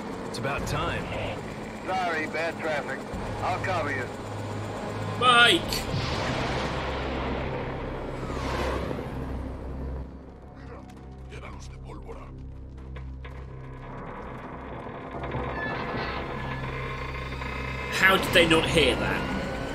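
A helicopter's rotor thumps and drones overhead.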